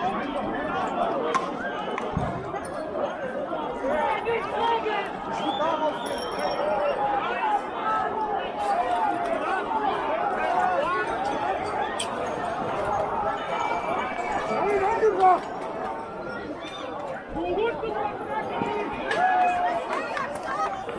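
A large crowd of men and women talks and shouts outdoors.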